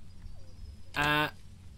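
A young man lets out a short drawn-out exclamation into a close microphone.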